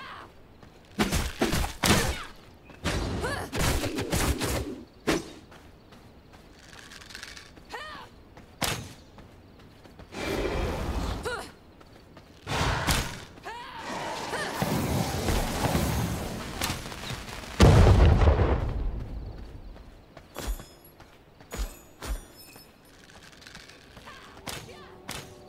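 Magic spells whoosh and crackle in short bursts.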